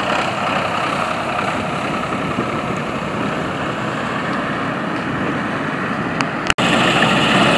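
A tractor engine runs nearby.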